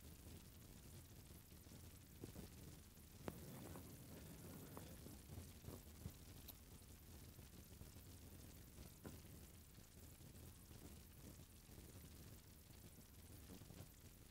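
Sandals slap softly on pavement with each step.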